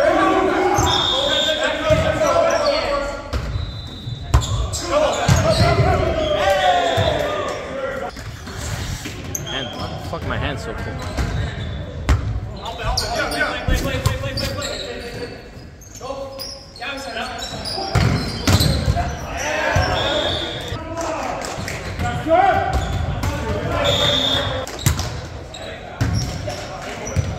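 Men call out and talk in a large echoing gym.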